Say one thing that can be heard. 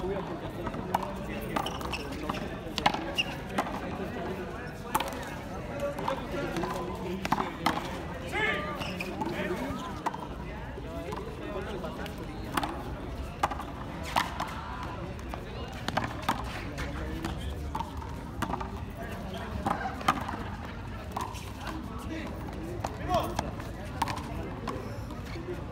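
A ball smacks sharply against a wall again and again, echoing outdoors.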